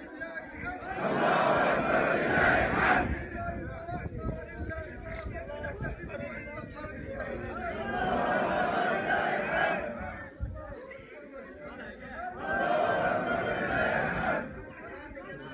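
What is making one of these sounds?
A crowd of men chants loudly together in bursts.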